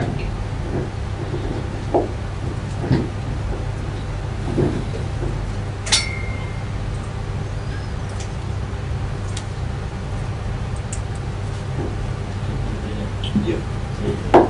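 A man speaks in short bursts through a microphone in a large room.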